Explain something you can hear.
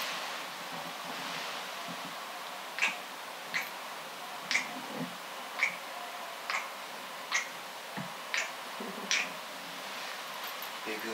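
Bedsheets rustle as someone moves on a bed.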